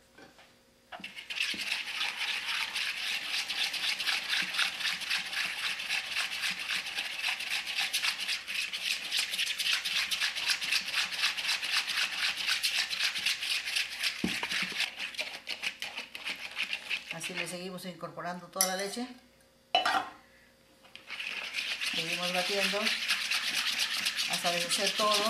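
A wire whisk beats a thin batter quickly in a plastic bowl, clicking and rattling.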